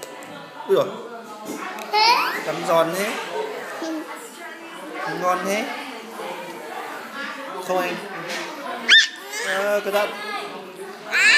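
A young girl talks and squeals playfully close by.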